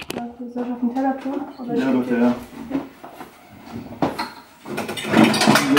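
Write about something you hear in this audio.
A cupboard door clicks open and shut.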